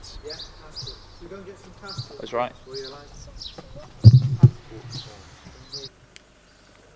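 A young man talks casually, close by.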